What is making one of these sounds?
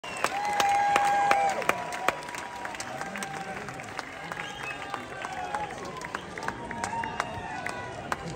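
An audience claps and whistles in a large hall.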